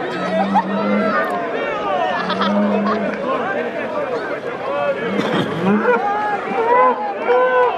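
A crowd of men and women shout and talk excitedly close by, outdoors.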